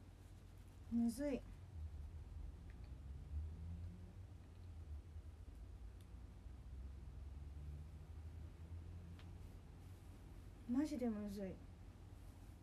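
A young woman hums two short notes close by.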